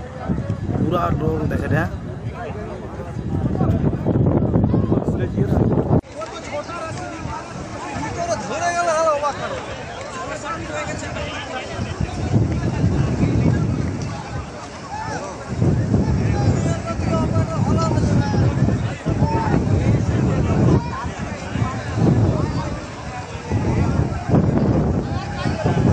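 Men shout and talk excitedly nearby.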